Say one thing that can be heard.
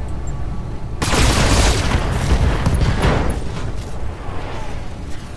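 Heavy weapons fire and explosions boom and crackle.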